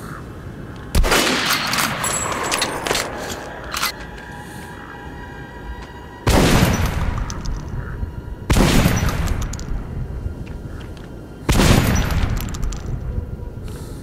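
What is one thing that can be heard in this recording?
A gun fires loud blasts that ring out and slowly fade.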